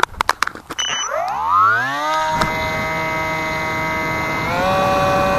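An electric motor whines up to speed, then hums steadily and rises again.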